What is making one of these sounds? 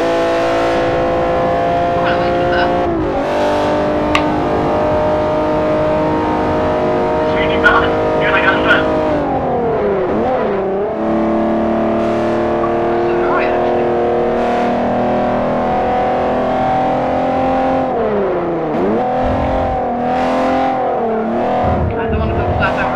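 A racing car engine roars loudly, its pitch dropping sharply at each gear change.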